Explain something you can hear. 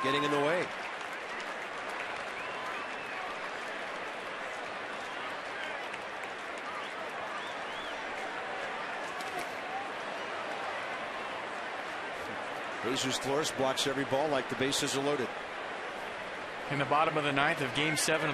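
A stadium crowd murmurs.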